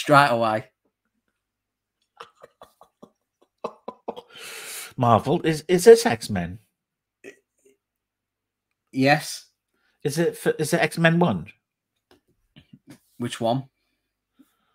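A man speaks with animation over an online call, in short bursts with pauses.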